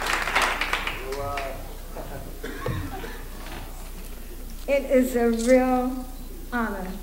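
An elderly woman speaks through a microphone.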